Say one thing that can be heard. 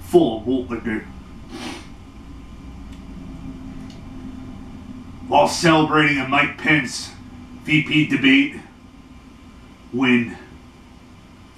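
A man speaks with animation, close to the microphone.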